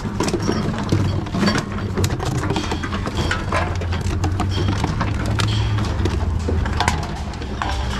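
Plastic bottles crinkle as they are handled.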